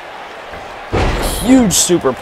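A body slams down onto a wrestling mat with a heavy thud.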